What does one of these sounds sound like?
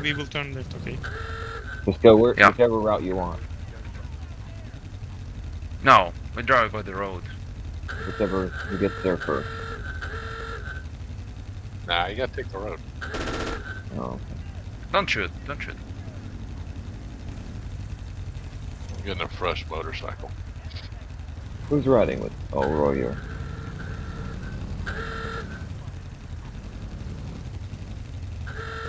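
Motorcycle engines idle with a low, steady rumble.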